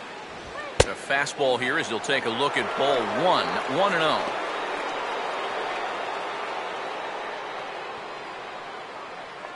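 A stadium crowd cheers and then slowly quiets.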